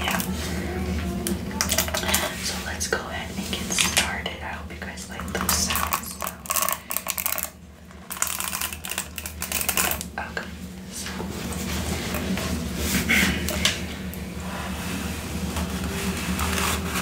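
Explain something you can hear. A young woman talks softly and close to a microphone.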